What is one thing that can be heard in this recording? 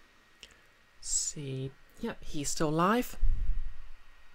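A young woman speaks briefly and close to a microphone.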